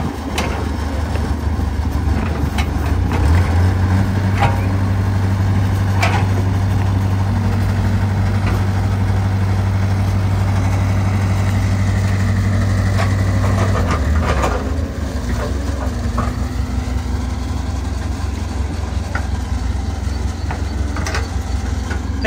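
An excavator bucket scrapes and thuds into wet soil.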